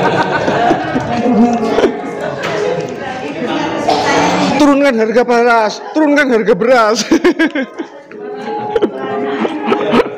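A group of people talk and laugh in a room.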